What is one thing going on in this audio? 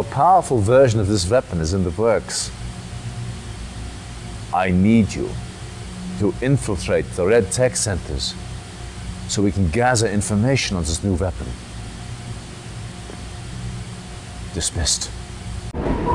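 A middle-aged man speaks calmly and sternly, close by.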